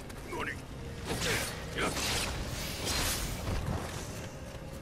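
Swords slash and clash in quick bursts.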